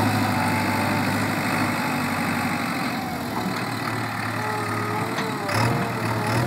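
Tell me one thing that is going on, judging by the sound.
A backhoe loader's diesel engine rumbles steadily close by.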